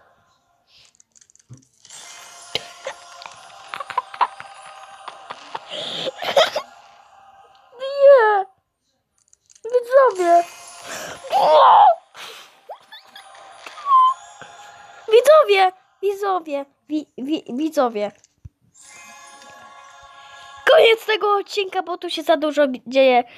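Bright electronic chimes and sparkling effects ring out from a game as eggs hatch.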